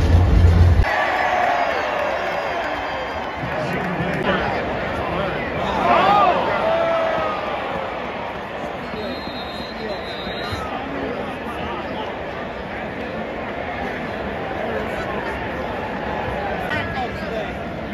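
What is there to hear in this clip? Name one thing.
A large stadium crowd roars and cheers all around, loud and echoing outdoors.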